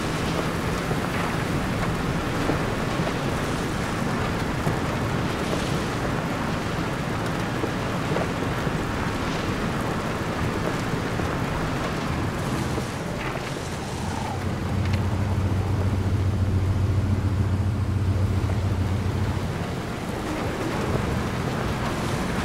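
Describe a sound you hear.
A vehicle engine rumbles steadily while driving over rough ground.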